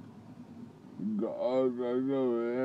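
A middle-aged man sings loudly close by, drawing out his notes.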